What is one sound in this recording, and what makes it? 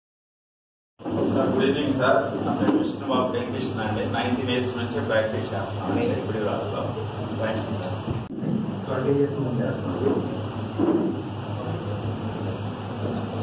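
A man speaks with animation into a handheld microphone, heard through a loudspeaker in an echoing room.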